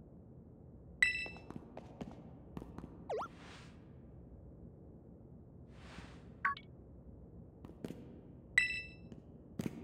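A short chime sounds twice.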